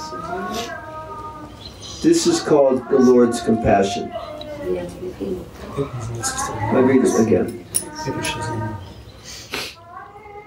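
An elderly man chants calmly in a low, steady voice.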